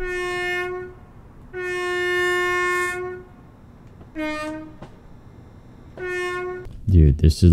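A train horn sounds in several loud blasts, some long and some short.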